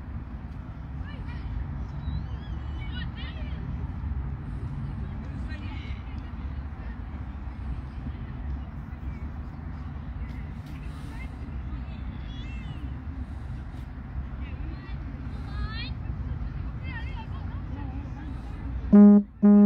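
Young players shout and call out in the distance.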